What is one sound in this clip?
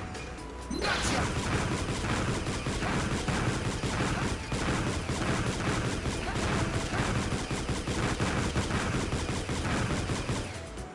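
Electronic blaster shots fire in quick bursts.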